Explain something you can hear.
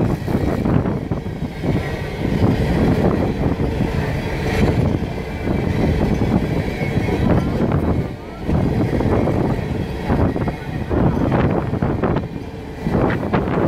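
A long freight train rumbles past close by, its wheels clattering on the rails.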